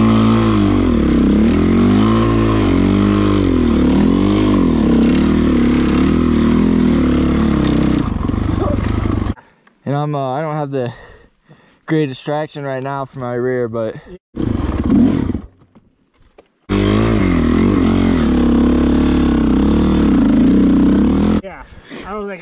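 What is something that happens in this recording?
A dirt bike engine roars close by, revving up and down as it rides.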